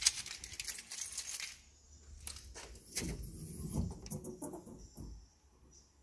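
A metal lid lifts open with a rattle.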